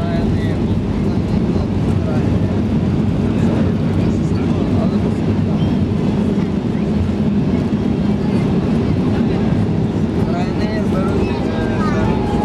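Jet engines roar steadily, heard from inside a plane cabin.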